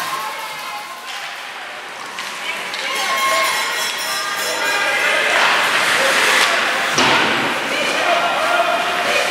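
Skates scrape and swish across ice in a large echoing rink.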